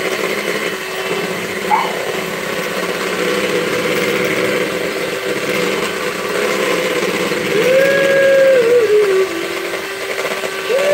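An electric hand mixer whirs steadily.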